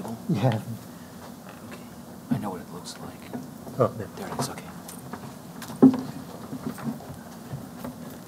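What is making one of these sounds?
A man speaks haltingly into a microphone, with long pauses.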